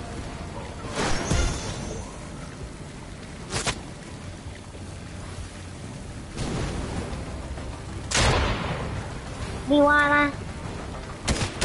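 A pickaxe strikes hard surfaces with sharp thuds.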